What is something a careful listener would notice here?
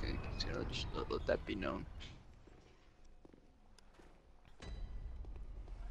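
A heavy wooden gate creaks open.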